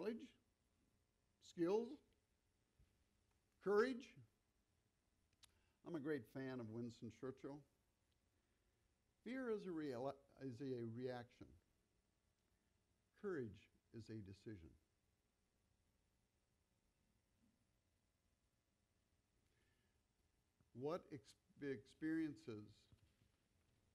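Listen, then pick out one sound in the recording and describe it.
An older man speaks slowly into a microphone, with long pauses.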